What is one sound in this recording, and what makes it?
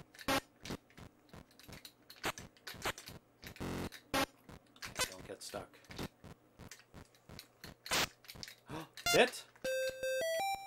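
Short electronic video game blips and clicks sound repeatedly.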